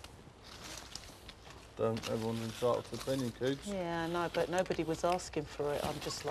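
Leaves rustle as a man reaches into a climbing plant.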